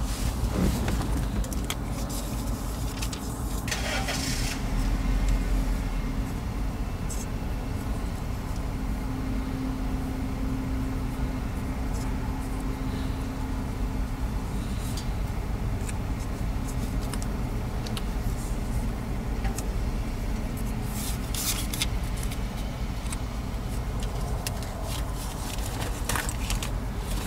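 A car engine idles with a steady low rumble, heard from inside the car.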